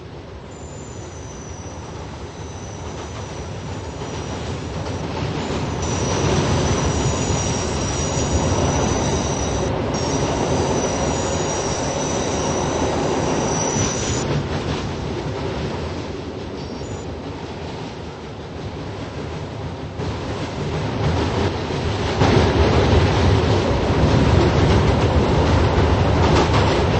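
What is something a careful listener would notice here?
A subway train rumbles closer through a tunnel and roars past.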